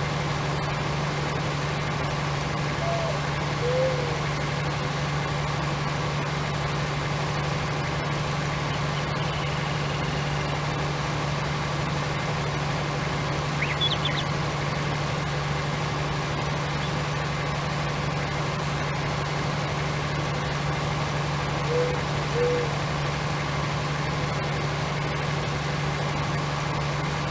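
A large harvester engine hums steadily.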